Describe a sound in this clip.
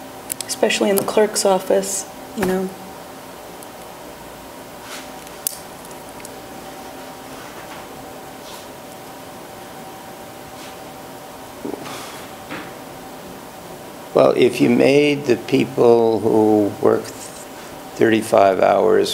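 An adult speaks into a microphone in a large room, in short bursts with pauses.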